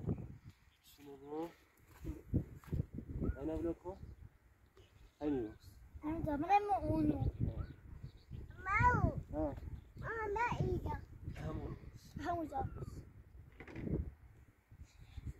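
A young child talks and calls out excitedly nearby.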